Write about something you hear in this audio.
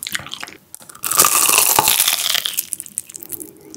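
Fried food crunches loudly as a young man bites into it.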